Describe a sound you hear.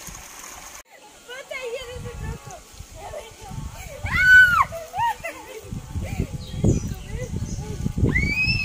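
Young girls talk and call out with animation nearby.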